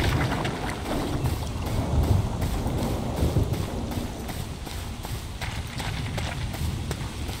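Footsteps crunch slowly over soft ground.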